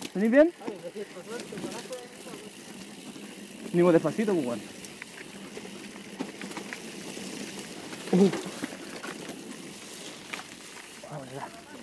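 A bicycle frame rattles over bumps.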